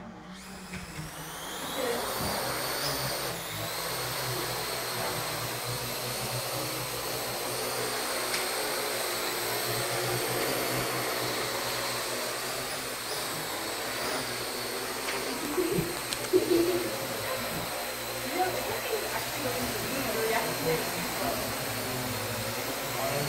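A small drone's rotors spin up and whine steadily as it hovers.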